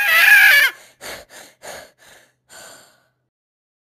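A cartoon cat speaks in a high, squeaky voice.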